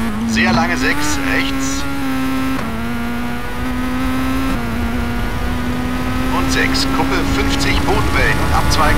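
Tyres crunch and skid on snowy gravel.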